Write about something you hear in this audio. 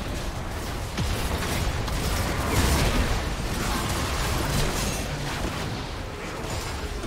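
Magic spell effects whoosh and crackle in a fight.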